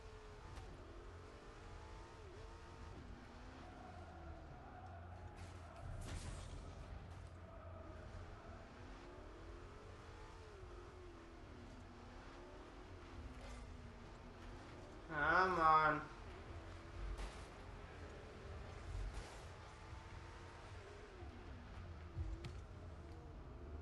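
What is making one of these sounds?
A car engine hums and revs, its pitch rising and falling.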